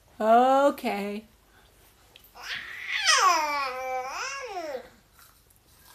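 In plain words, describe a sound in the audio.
A baby coos and squeals close by.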